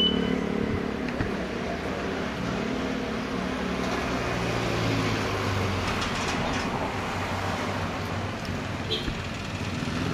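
A man speaks close by.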